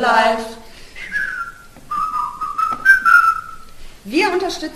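Women whistle a short tune.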